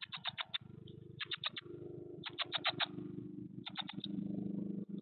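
Nestling birds chirp in quick, shrill bursts close by.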